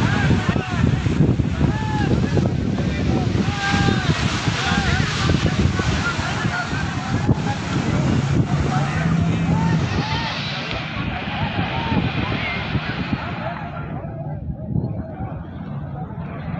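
A crowd of people chatters and calls out in the distance.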